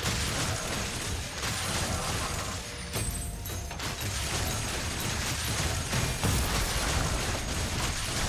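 Game spells and attacks crackle and burst in a fight.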